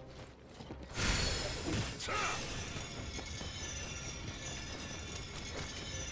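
A blade strikes with a burst of fiery sparks.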